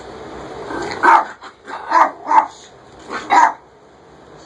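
A small dog barks sharply in short bursts.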